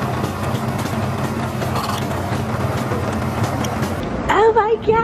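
A drink machine hums steadily.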